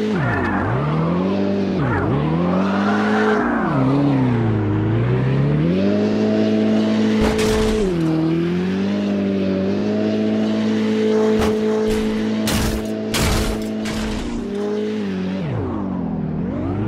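A car engine revs up and down loudly.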